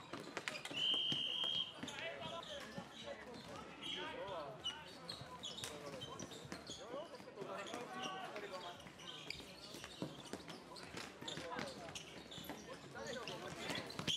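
Plastic sticks clack against a ball and the surface.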